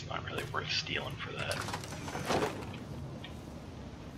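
A wooden door opens with a creak.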